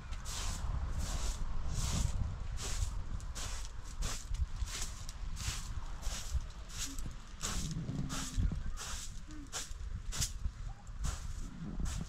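A broom sweeps a mat with quick, regular swishing strokes.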